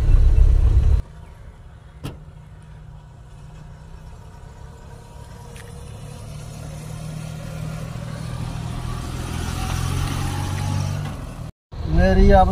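A van engine rumbles as it approaches along a dirt track and grows louder.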